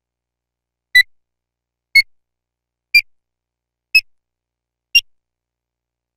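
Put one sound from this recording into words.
A game countdown timer beeps once a second, each beep a little higher than the last.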